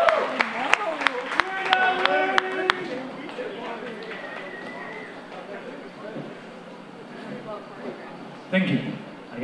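A rock band plays loudly on stage.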